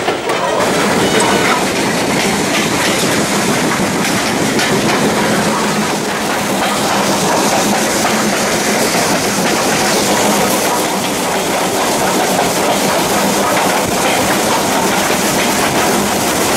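Wind rushes loudly past the train's open window.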